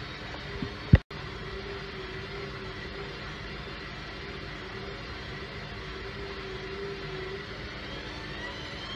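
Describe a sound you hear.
A washing machine drum turns with a steady hum and whirr.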